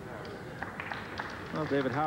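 Billiard balls click together as they are handled.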